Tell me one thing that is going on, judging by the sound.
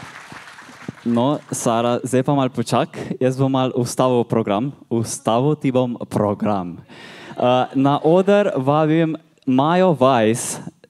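A young man speaks through a microphone and loudspeakers in an echoing hall.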